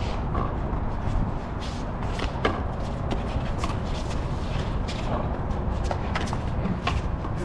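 A ball smacks against walls and paddles with sharp echoing pops.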